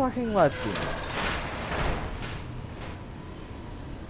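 A heavy metal door slams shut.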